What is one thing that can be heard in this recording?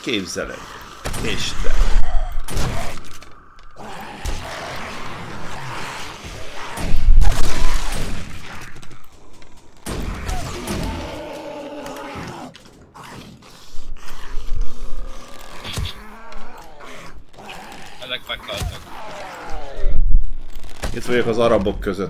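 A bow string twangs as an arrow is loosed.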